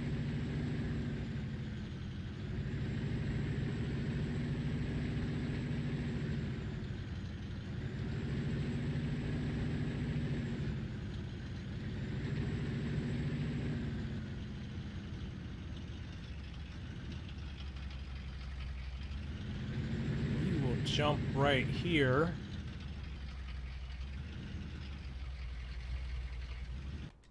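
A truck engine drones steadily, rising and falling as the truck drives along, then settles to a low idle.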